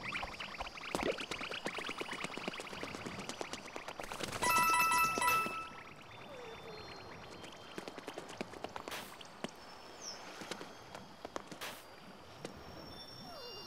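Footsteps patter quickly on hard stone.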